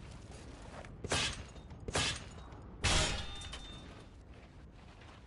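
Heavy blows smash and crack against a wooden wall.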